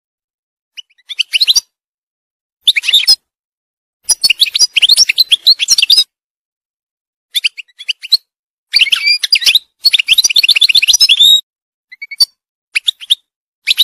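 A small songbird sings close by in bursts of quick, twittering chirps and trills.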